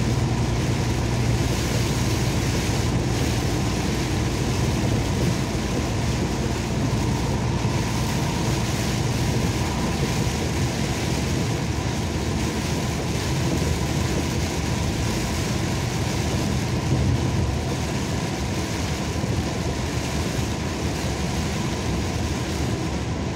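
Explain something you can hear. A car engine hums steadily with road noise inside.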